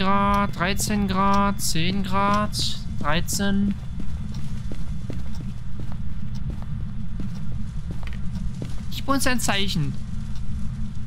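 A young woman speaks animatedly into a close microphone.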